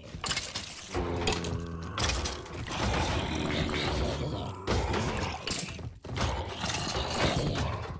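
Blows thud on fighting creatures.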